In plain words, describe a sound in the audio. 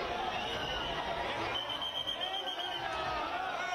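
Men shout with excitement close by.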